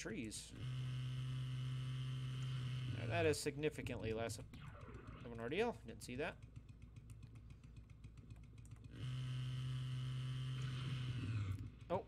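A chainsaw engine runs with a steady drone.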